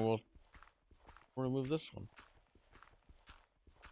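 A shovel crunches into gravel in short, repeated scrapes.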